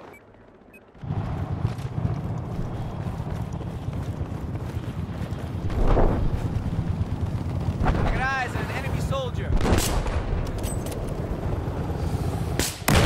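Explosions boom and rumble in a loud battle.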